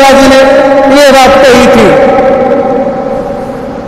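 A man speaks up close.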